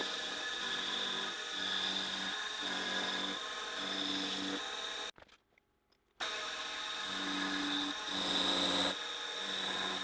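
A router bit whines at high speed while cutting wood.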